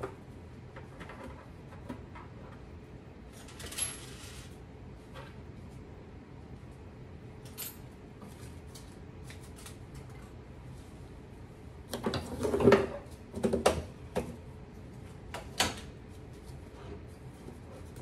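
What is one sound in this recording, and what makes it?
Objects rattle and clatter inside a wooden drawer.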